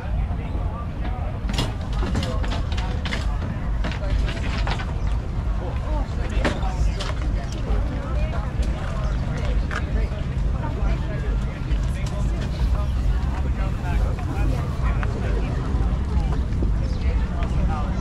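A crowd of people chatters around outdoors.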